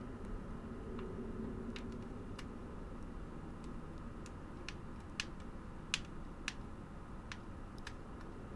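Armoured footsteps clank on stone steps.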